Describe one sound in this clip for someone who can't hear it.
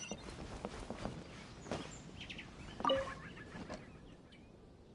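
Footsteps tap quickly across wooden boards.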